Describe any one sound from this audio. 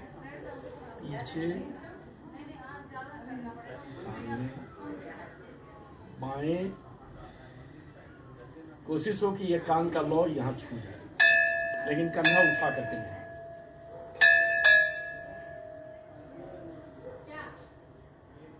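A middle-aged man speaks aloud nearby, outdoors.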